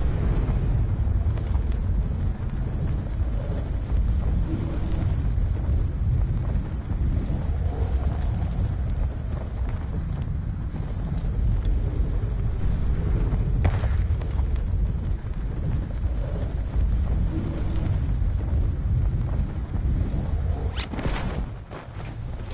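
Wind roars steadily past a skydiver in freefall.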